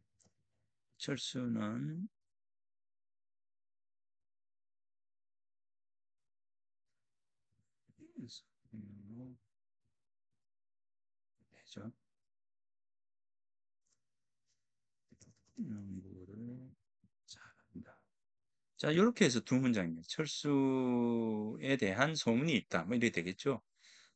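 A middle-aged man speaks calmly through a microphone in pauses, as if on an online call.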